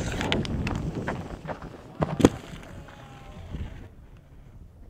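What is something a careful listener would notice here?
Skis scrape and chatter over packed snow.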